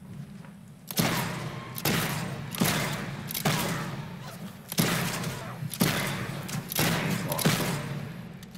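Blades clash and strike repeatedly in quick, loud bursts.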